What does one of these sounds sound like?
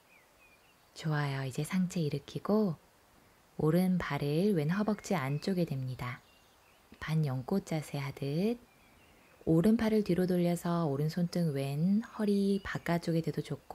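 A young woman speaks calmly, close to a microphone.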